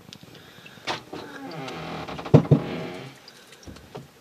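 Liquid pours into a plastic bucket.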